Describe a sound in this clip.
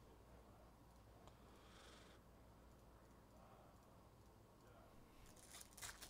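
Trading cards rustle and flick as they are shuffled by hand.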